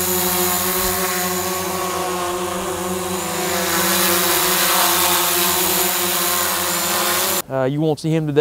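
A drone's propellers whine and buzz steadily overhead.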